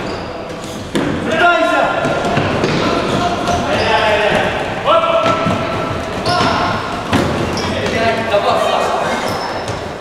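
Men shout to each other in an echoing hall.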